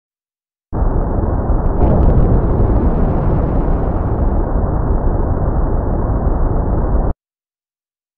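A spacecraft's engines roar steadily, then cut off abruptly.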